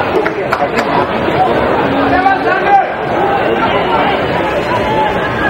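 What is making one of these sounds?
A large crowd cheers and chants steadily in an open stadium.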